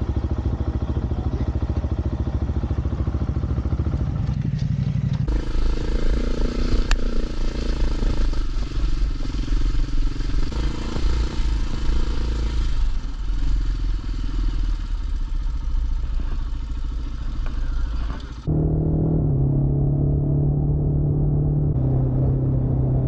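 A motorcycle engine rumbles and revs.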